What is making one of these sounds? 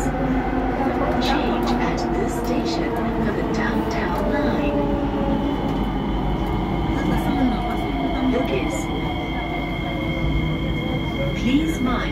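Train brakes whine with a falling pitch as the train slows down.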